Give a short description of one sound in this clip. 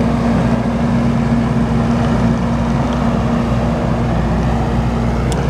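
A tracked loader's diesel engine rumbles nearby.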